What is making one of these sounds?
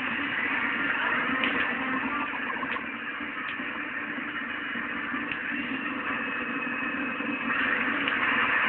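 Whitewater rushes and roars steadily.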